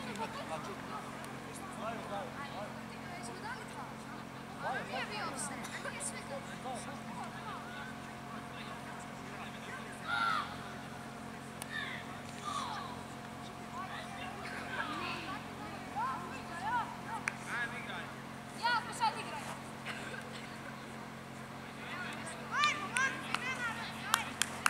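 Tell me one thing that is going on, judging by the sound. Young players shout to each other outdoors, from a distance.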